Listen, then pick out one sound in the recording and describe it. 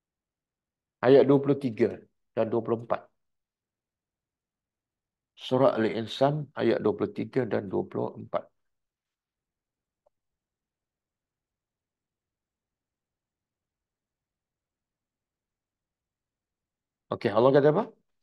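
An older man reads aloud slowly and calmly into a close microphone, with long pauses.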